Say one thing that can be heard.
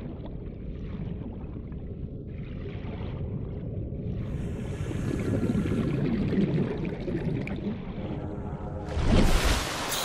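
Water murmurs and bubbles in a low, muffled rumble.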